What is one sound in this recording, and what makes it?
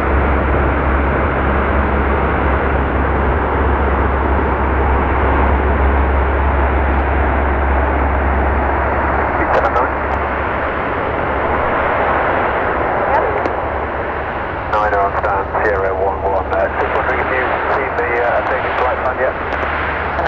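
Propeller engines of a large aircraft drone loudly as it taxis past.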